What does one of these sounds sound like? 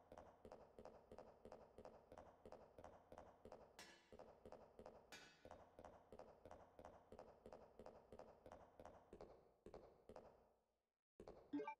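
Footsteps thud at a steady walking pace on a hard floor.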